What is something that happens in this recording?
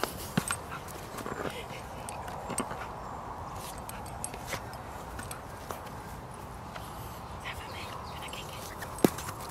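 A rubber ball thumps and bumps on grass as a dog pushes it.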